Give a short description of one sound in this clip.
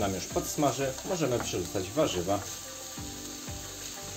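Chopped vegetables tumble off a board into a frying pan.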